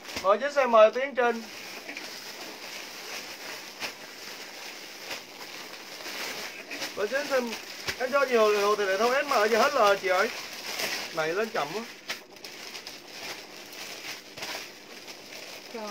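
Plastic packaging rustles and crinkles.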